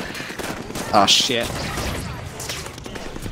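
A laser weapon fires with a sharp blast.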